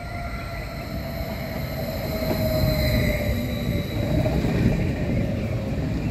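Train brakes squeal with a high, wavering whine.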